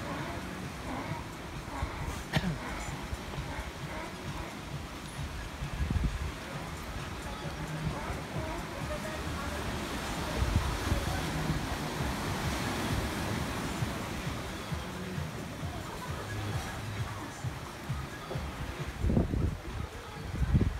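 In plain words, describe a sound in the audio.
Waves wash onto a rocky shore nearby.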